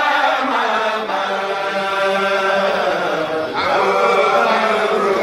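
A man chants in a long, steady voice into a microphone.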